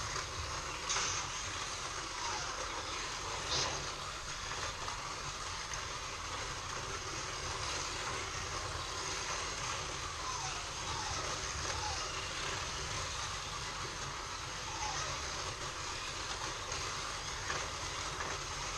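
Small electric slot cars whir steadily around a track.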